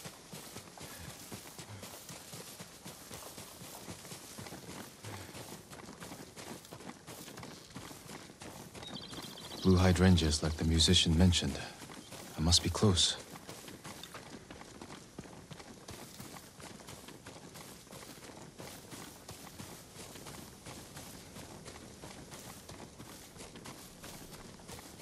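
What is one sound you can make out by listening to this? A horse gallops steadily with quick, rhythmic hoofbeats.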